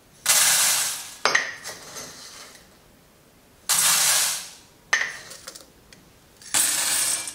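Beans rattle and shake in a metal sieve.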